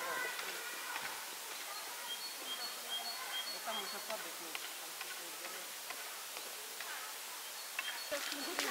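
A large bear chews and crunches food.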